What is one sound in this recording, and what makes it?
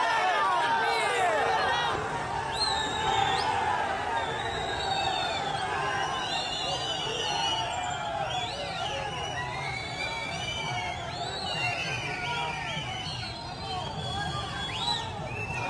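A large crowd of men shouts and chants outdoors.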